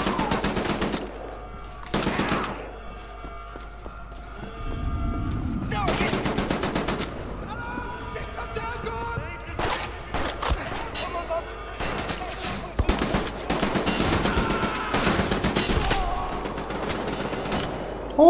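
Automatic guns fire in rapid bursts.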